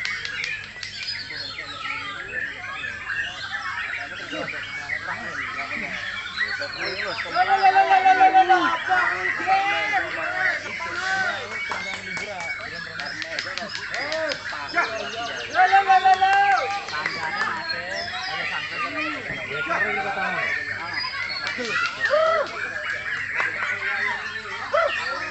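Many other birds chirp and sing all around.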